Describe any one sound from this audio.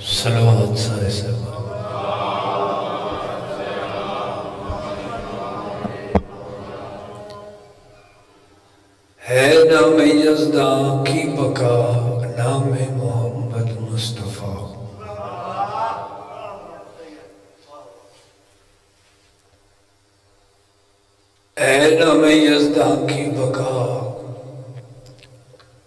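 A man recites loudly and with emotion into a microphone, heard through a loudspeaker with echo.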